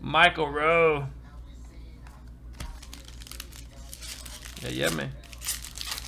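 Trading cards slide and shuffle against each other.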